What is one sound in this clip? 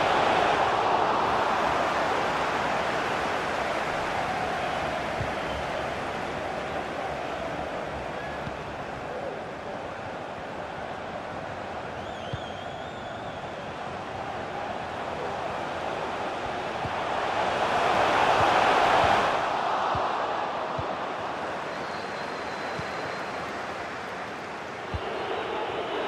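A stadium crowd roars steadily, swelling loudly for a moment.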